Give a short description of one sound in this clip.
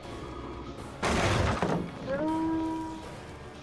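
Wooden boards crash and splinter as they are smashed.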